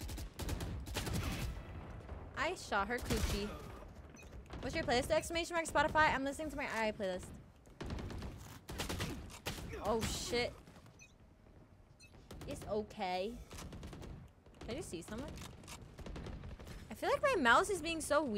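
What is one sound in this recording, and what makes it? Rapid gunfire cracks from a game.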